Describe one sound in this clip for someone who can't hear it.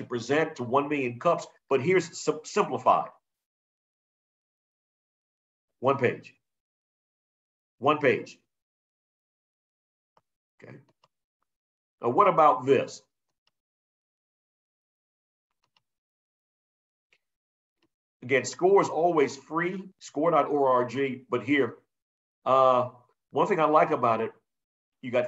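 A man talks calmly into a microphone, in short bursts with pauses.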